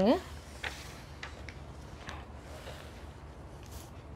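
A book's paper page rustles as it is turned.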